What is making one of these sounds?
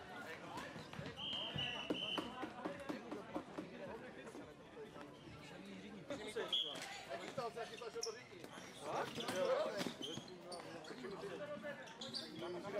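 A ball knocks against a hard floor.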